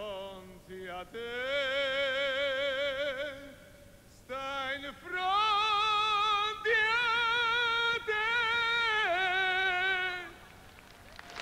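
A man sings loud, wavering high notes into a microphone.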